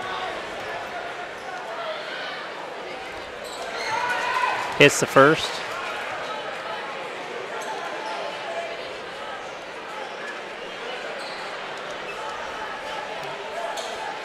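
A large crowd murmurs and chatters in an echoing gym.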